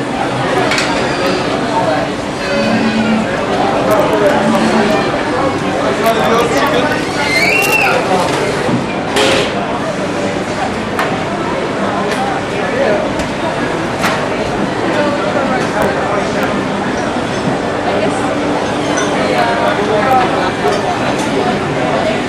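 A crowd of people chatter all around in a busy, echoing hall.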